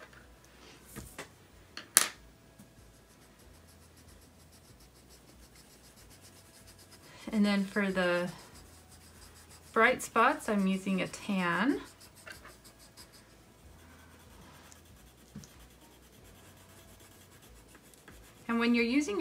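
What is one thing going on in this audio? Coloured pencils scratch softly on paper.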